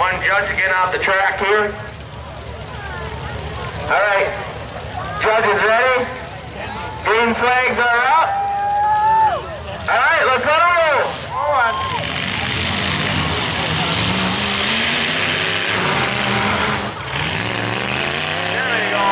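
Car engines rev and roar nearby.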